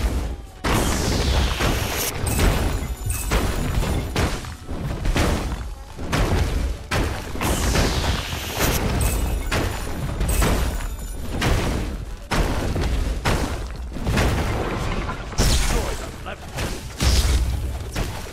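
Magic blasts and hits crackle and boom repeatedly.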